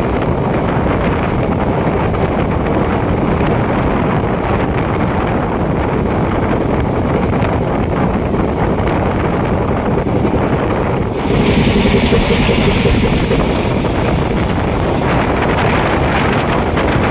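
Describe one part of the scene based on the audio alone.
A train rumbles and rattles steadily along the tracks, heard from close by.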